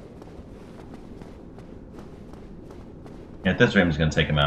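Footsteps clatter quickly on a hard stone floor.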